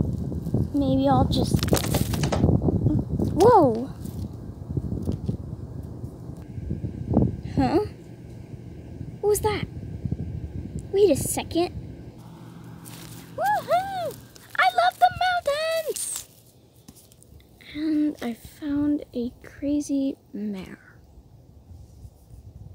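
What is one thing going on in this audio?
A toy horse taps and scrapes over dry dirt.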